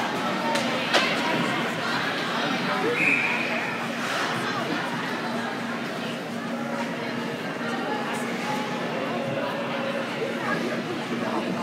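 Skates scrape and glide on ice in a large echoing rink.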